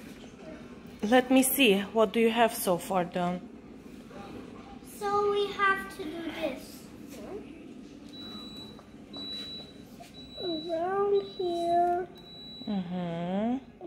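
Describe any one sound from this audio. A young girl talks close by, in a high, lively voice.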